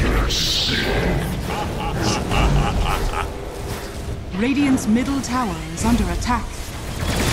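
Magic spells crackle and whoosh in a fast fantasy battle.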